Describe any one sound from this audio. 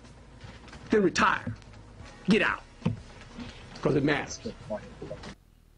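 A man speaks calmly in short phrases into a microphone.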